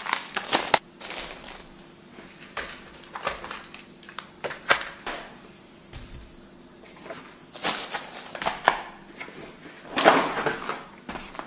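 Plastic bags rustle and crinkle as groceries are unpacked.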